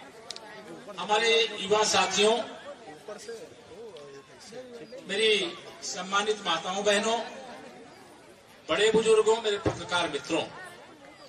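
A middle-aged man gives a speech loudly through a microphone and loudspeakers, in bursts with pauses.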